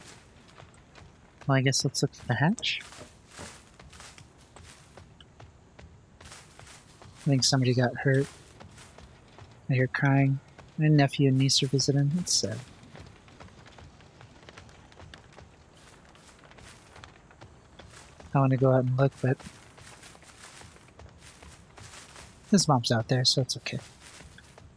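Footsteps crunch slowly through grass and dry leaves.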